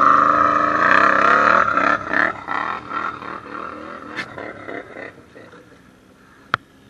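A quad bike engine revs loudly close by.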